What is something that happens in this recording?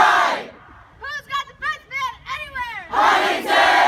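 A man calls out a rhythmic chant.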